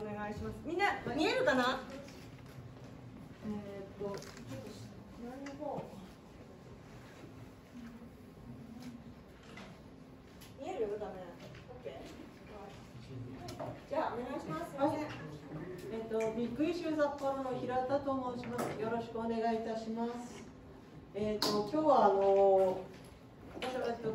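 A woman speaks calmly into a microphone, heard through a loudspeaker in an echoing room.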